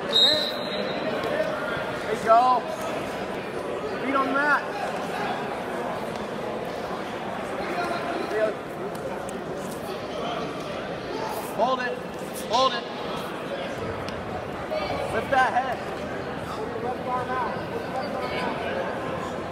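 Several people shout encouragement loudly from close by.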